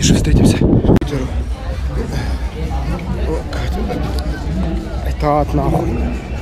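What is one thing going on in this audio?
A middle-aged man talks breathlessly close to the microphone.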